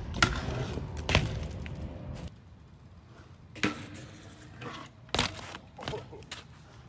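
A bicycle lands hard on concrete with loud thuds.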